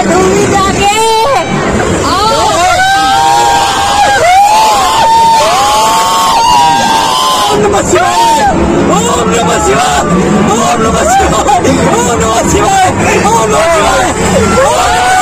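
Young people scream and shout excitedly nearby.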